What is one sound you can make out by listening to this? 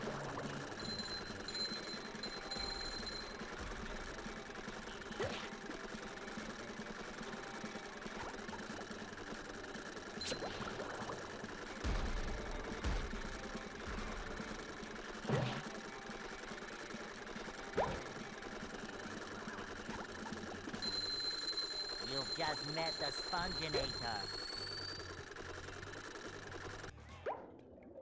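Upbeat video game music plays steadily.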